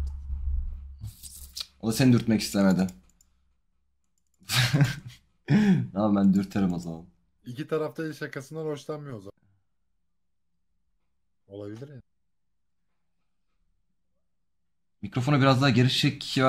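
A young man talks casually into a close microphone, in bursts with pauses.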